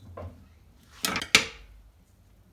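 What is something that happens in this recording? A knife is set down on a wooden board.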